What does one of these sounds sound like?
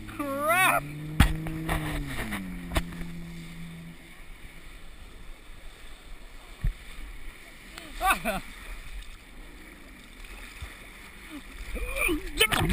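Water splashes and churns close by.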